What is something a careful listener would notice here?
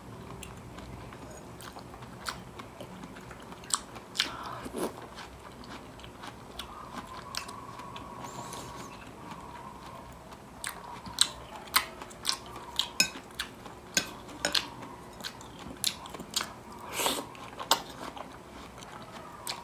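A woman chews food close to a microphone with wet, crunchy sounds.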